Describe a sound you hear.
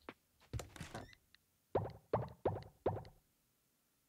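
Soft clicks sound in quick succession.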